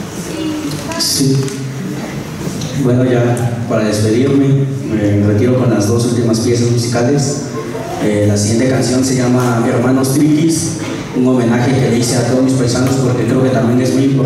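A man speaks into a microphone over loudspeakers in a large hall.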